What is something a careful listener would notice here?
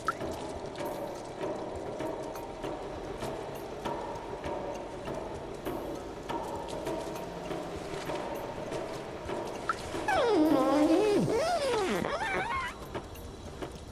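Footsteps patter on a wet floor.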